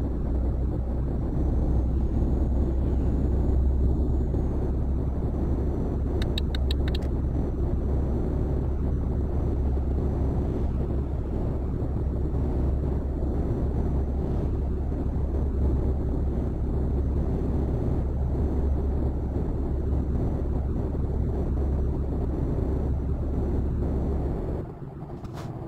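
A truck engine drones steadily with a deep hum.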